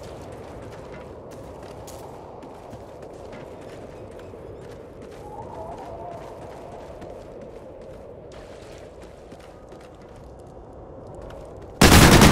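Footsteps patter steadily on hard ground.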